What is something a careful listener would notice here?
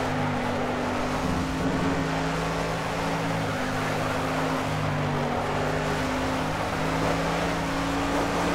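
A racing car engine drones steadily at high revs, shifting pitch as gears change.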